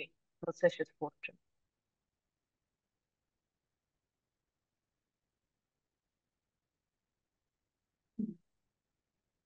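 A young woman speaks briefly and calmly over an online call.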